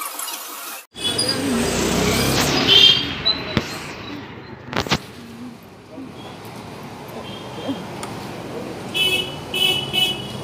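Street traffic rumbles steadily outdoors.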